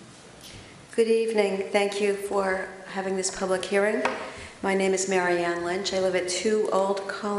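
A woman speaks steadily through a microphone.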